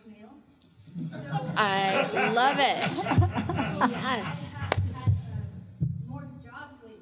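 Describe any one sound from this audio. Two women laugh loudly together through microphones.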